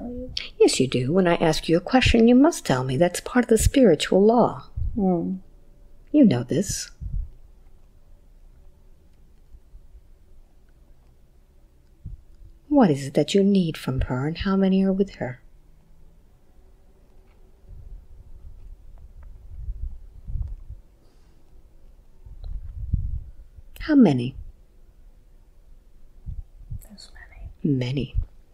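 A woman speaks softly and calmly close to a microphone, with long pauses.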